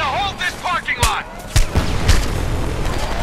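Heavy gunfire rattles nearby.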